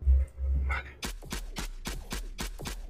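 Shots fire in quick succession.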